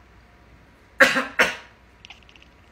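A cat hisses sharply.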